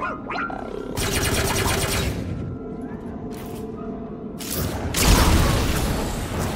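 An energy weapon fires with a loud crackling hiss.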